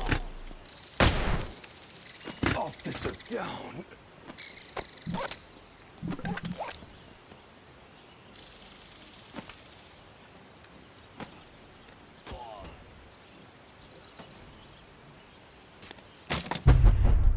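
A gun's mechanism clicks and clacks as it is handled.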